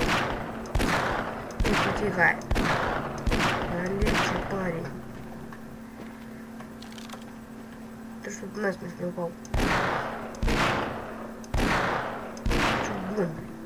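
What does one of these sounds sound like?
Pistol shots fire one after another.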